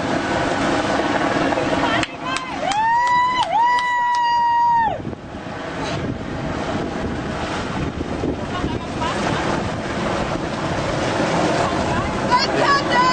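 Choppy water splashes and laps.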